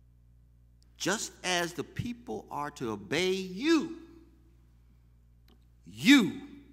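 A man preaches forcefully into a microphone, his voice rising and falling.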